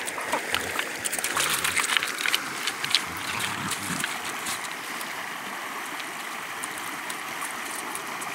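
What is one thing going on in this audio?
Dogs splash through shallow water.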